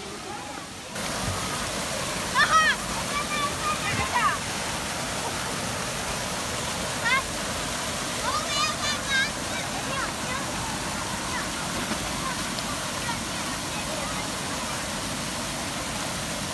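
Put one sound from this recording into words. Fountain water splashes steadily into a pool outdoors.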